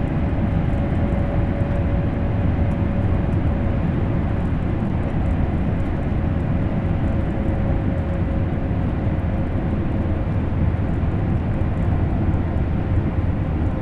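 A train rumbles steadily along the rails at high speed.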